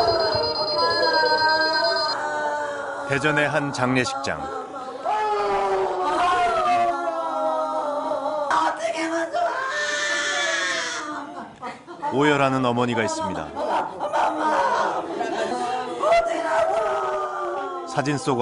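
An elderly woman wails and sobs loudly close by.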